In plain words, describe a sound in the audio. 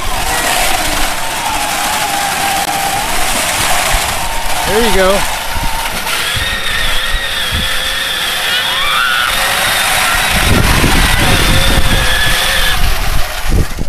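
A small electric motor whines steadily as a toy vehicle drives.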